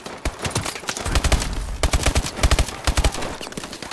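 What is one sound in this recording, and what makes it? Rapid gunfire rattles loudly at close range.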